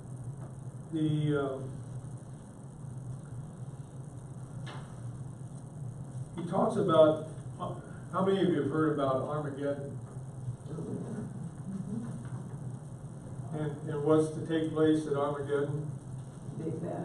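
An elderly man reads aloud and then talks calmly.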